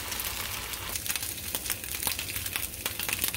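Food sizzles and crackles faintly on a hot griddle.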